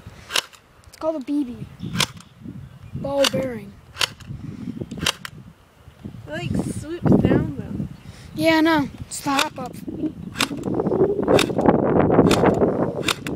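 A toy gun fires sharp snapping shots.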